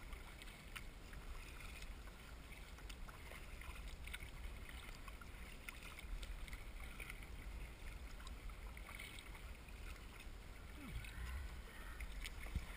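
Choppy water laps and splashes against a kayak hull.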